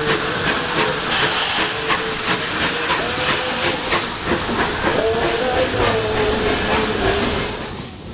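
Train wheels squeal steadily against the rails.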